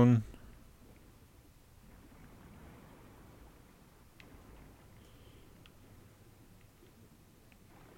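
Deep water murmurs with a low, steady rumble.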